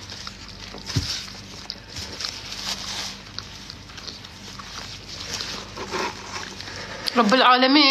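A young woman chews food close to the microphone.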